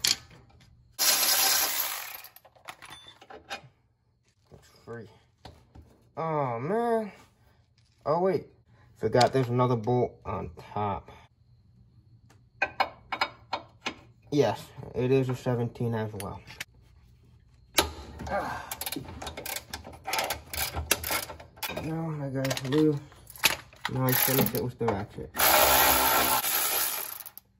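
A power ratchet whirs in short bursts.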